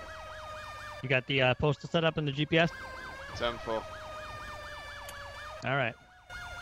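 A fire engine air horn blasts in short bursts.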